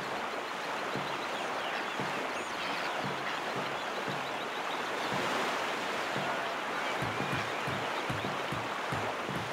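Paddles splash rhythmically through water.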